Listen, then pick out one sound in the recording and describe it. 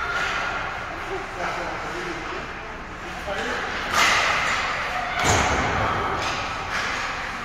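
Hockey sticks tap and slap against the ice and puck.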